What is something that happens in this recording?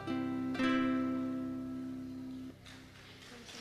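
A ukulele chord rings out and fades.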